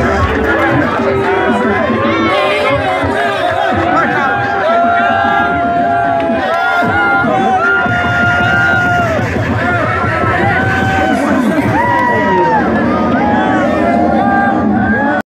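A crowd of young men sings and shouts loudly close by.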